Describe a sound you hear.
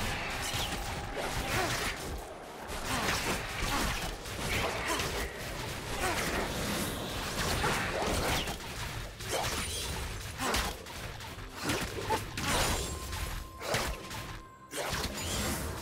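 Game spells whoosh and hits clash in a fast fight.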